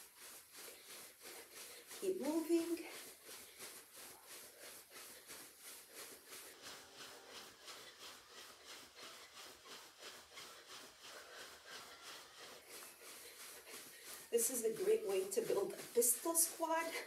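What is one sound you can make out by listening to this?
Feet thump quickly and steadily on a carpeted floor.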